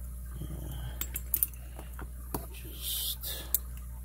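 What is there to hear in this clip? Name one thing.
Metal keys and padlocks clink and rattle against each other.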